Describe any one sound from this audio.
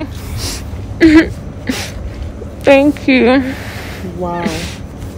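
A young woman cries out with emotion close by.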